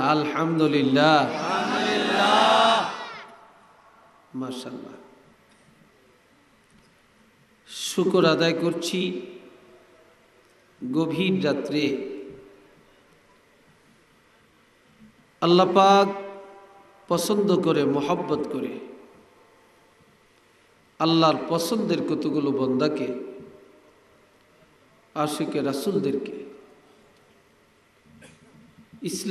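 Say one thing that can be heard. An elderly man speaks in bursts through a microphone and loudspeakers, preaching with fervour, with pauses between phrases.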